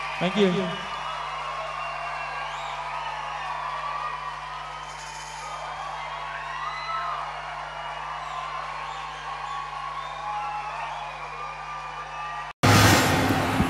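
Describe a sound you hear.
A large crowd cheers loudly in a big echoing hall.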